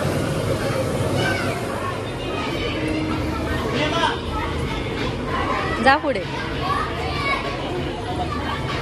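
Young children chatter and call out nearby.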